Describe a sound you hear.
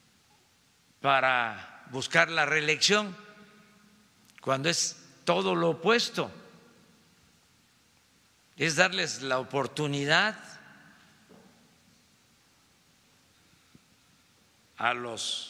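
An elderly man speaks into a microphone in short bursts with pauses.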